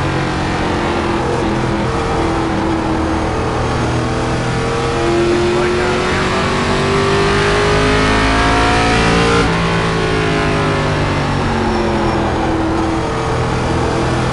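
A race car engine roars steadily, rising in pitch as the car speeds up and dropping as it slows for a corner.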